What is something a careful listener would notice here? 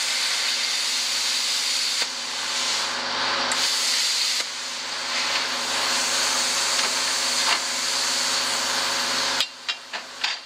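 An angle grinder cuts through steel with a loud, steady whine.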